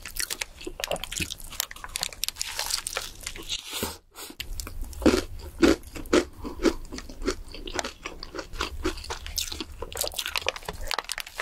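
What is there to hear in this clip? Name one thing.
A young woman bites into a soft burger up close.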